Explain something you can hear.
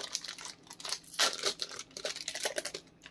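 A foil wrapper crinkles.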